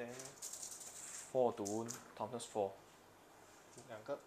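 Small plastic dice clatter across a table.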